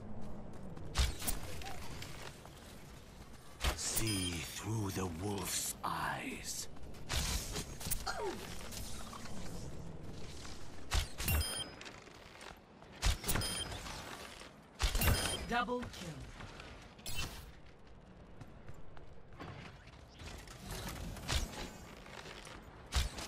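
A bow twangs as arrows are loosed again and again.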